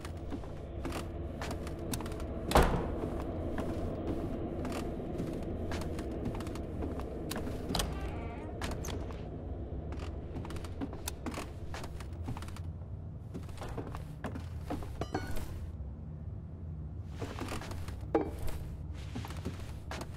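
Footsteps thud on wooden floorboards.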